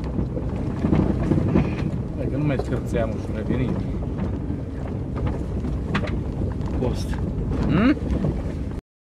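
A man talks nearby inside a car.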